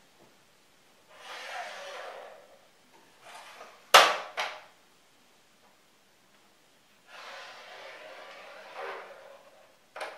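A marker squeaks as it draws lines on a whiteboard.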